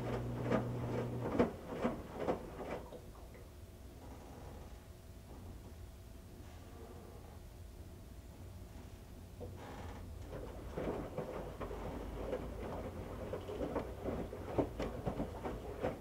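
Wet laundry sloshes and thumps inside a washing machine drum.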